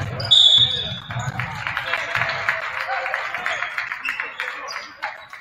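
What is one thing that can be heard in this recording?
A crowd in a gym cheers loudly.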